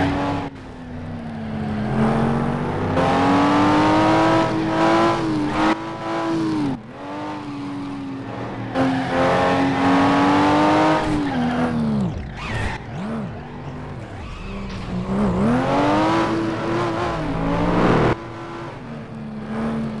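Tyres screech as cars slide through bends.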